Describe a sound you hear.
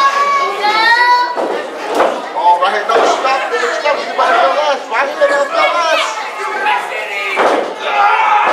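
Wrestlers strike each other with loud slaps.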